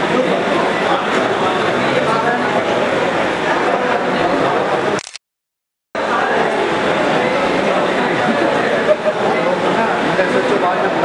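A crowd of men chatters loudly all around, close by.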